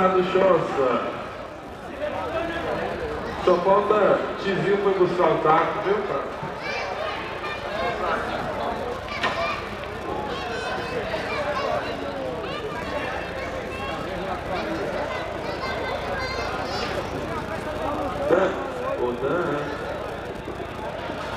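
A crowd of men chatters and talks nearby.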